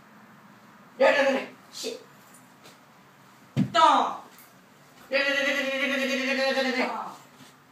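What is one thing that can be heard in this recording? A young boy shouts loudly nearby.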